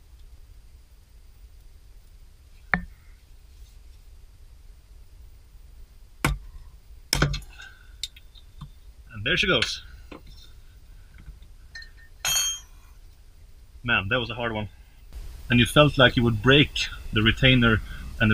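A ratchet wrench clicks as it turns a bolt.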